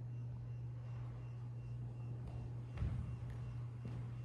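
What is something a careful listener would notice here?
Footsteps thud softly in a large echoing room.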